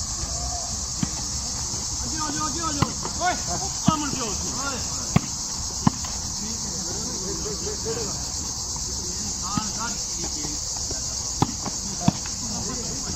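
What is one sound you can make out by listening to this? Hands smack a volleyball back and forth.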